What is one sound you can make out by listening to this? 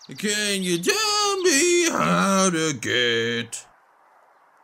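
A man's cartoonish voice shouts with animation, close to the microphone.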